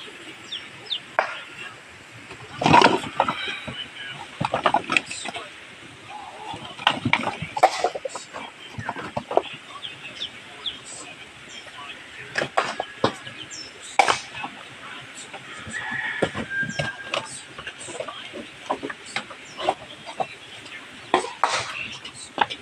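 Dry coconut husks knock and clatter as they are tossed onto a pile.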